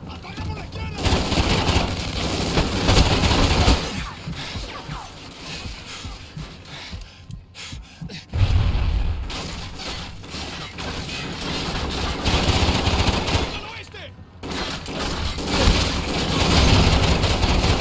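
Rifle gunfire rattles in loud bursts in an echoing room.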